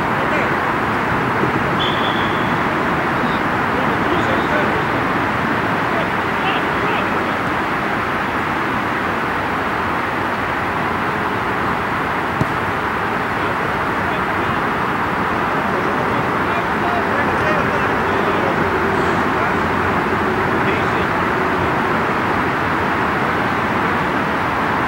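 Players shout to each other far off across an open field.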